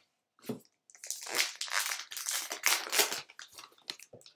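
A foil card pack rips open with a crinkling tear.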